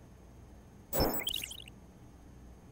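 A video game menu plays a short whoosh and chime as its page changes.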